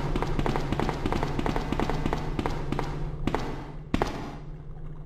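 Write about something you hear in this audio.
Footsteps run quickly across a metal walkway.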